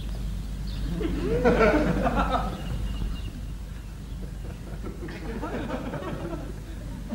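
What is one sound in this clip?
A man speaks quietly outdoors.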